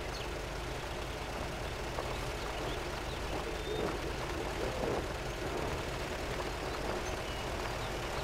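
An off-road vehicle engine rumbles steadily as it climbs a muddy track.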